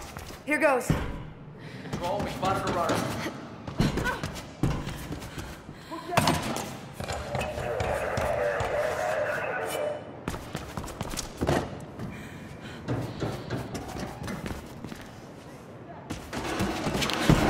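Quick footsteps thud on a metal walkway.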